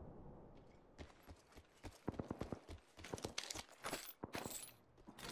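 Footsteps tap quickly on a metal floor.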